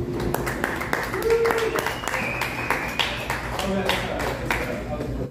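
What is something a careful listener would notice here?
An electric guitar plays a quick melody.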